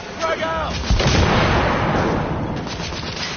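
A rifle fires a loud shot that echoes between buildings.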